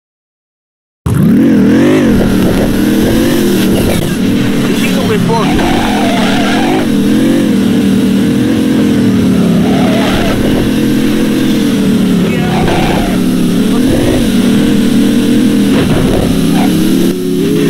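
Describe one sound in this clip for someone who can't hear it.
A car engine revs and roars loudly, rising and falling in pitch.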